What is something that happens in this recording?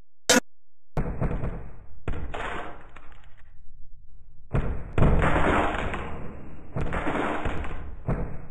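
Heavy blocks crash and thud against each other.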